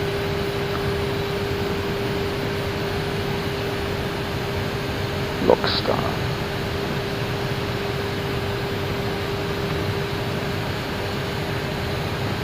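Jet engines and rushing air roar steadily in flight.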